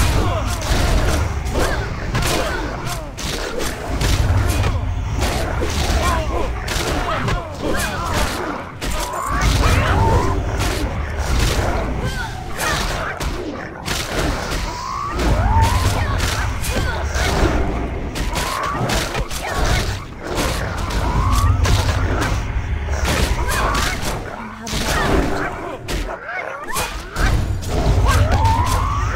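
Blades clash and strike again and again in a fast fight.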